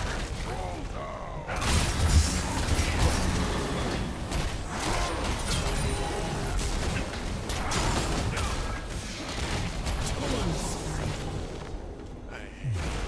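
Magical spells burst and crackle during a fierce fight.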